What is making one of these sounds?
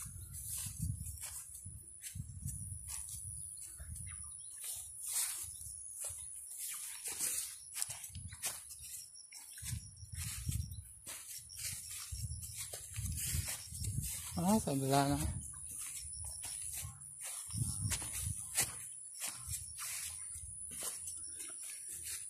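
Footsteps swish and thud through grass at a steady walking pace.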